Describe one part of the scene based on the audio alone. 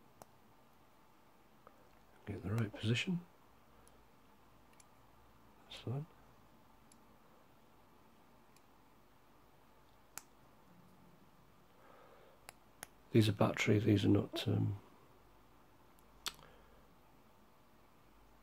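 A watch crown clicks softly as fingers turn it.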